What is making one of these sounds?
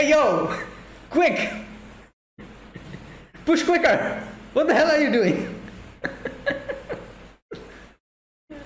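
A young man laughs heartily close by.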